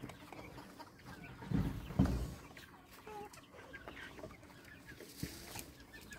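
Chickens cluck softly nearby.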